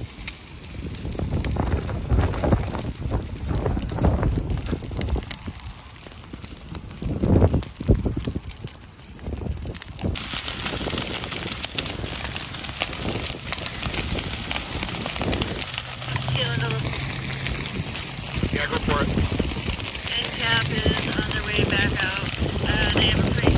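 Dry grass crackles and pops as a fire burns.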